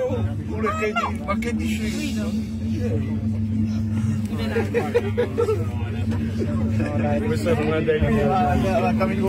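A rail car hums and rumbles steadily along its track.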